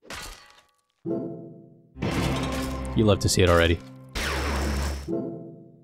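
Video game battle effects clash and chime.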